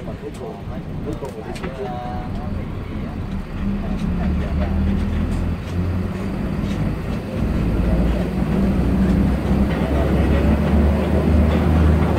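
A bus engine hums with a low, steady drone that grows louder.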